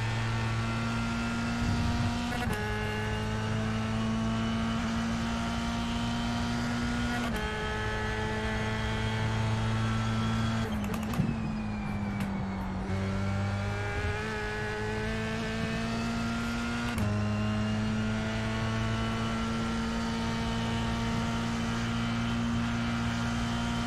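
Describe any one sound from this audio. A racing car engine revs high and drops in pitch with each gear change.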